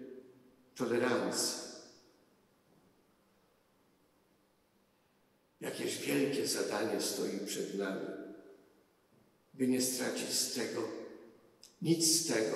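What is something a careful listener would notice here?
An elderly man speaks slowly and solemnly into a microphone, in a reverberant hall, with long pauses.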